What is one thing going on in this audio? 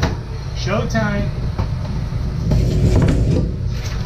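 A cardboard box slides onto a counter and thumps down.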